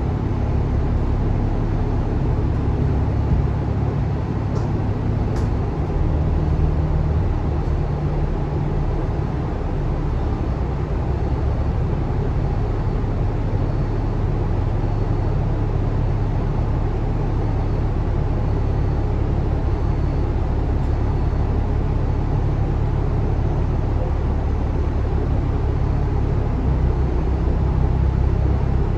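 A bus engine idles with a low, steady rumble inside the bus.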